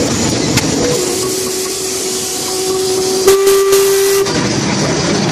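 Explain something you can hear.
A steam locomotive's whistle blows a long steady note.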